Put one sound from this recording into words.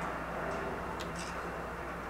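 A soft menu click sounds as a selection wheel closes.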